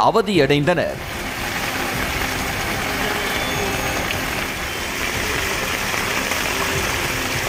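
Water gushes and bubbles up from a drain.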